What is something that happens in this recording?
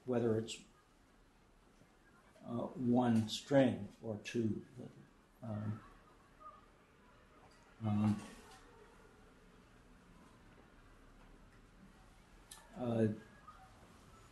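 An elderly man speaks calmly in short phrases with long pauses.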